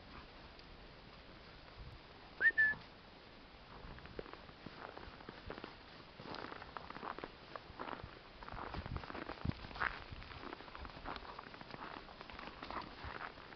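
Two dogs growl softly as they play-fight.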